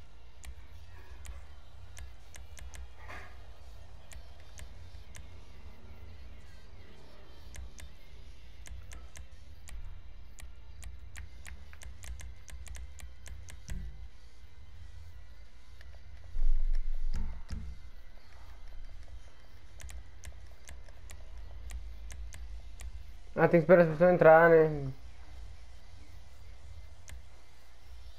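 Short electronic clicks tick quickly as menu options change.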